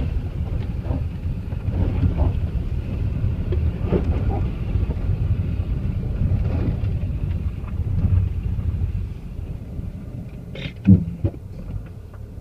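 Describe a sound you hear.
A car engine hums low inside the cabin as the car drives slowly.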